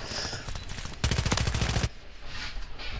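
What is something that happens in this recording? A rifle fires rapidly in a game.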